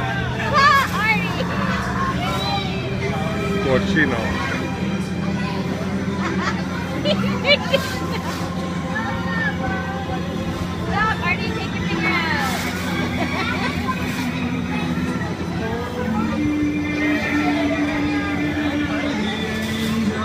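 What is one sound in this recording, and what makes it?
Carousel music plays steadily close by.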